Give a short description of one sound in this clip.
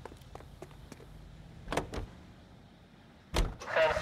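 A car door opens with a thunk.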